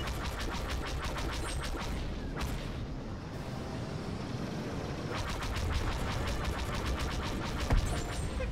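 A starfighter engine roars steadily.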